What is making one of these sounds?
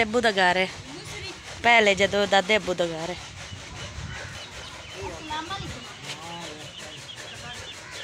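A woman speaks loudly and with animation close by.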